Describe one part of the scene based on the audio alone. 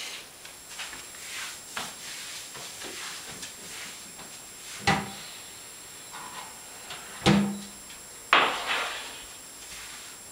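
Dishes clatter on a counter.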